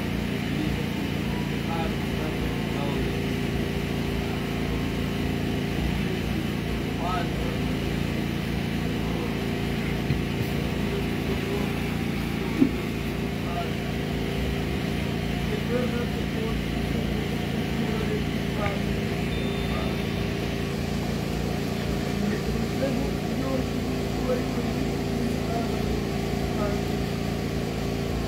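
Music plays through loudspeakers.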